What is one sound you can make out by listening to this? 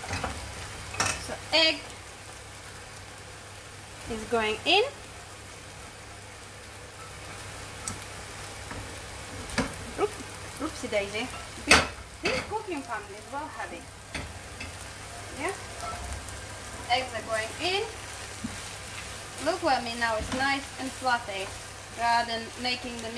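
A spoon scrapes and clinks against a pan.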